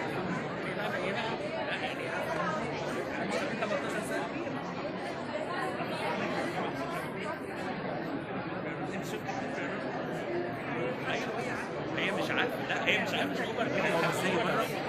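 A crowd of men and women chatters steadily in a large hall.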